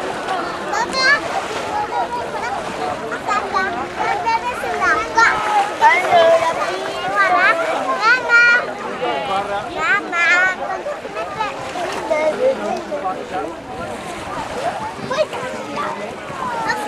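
A young child squeals and chatters excitedly nearby.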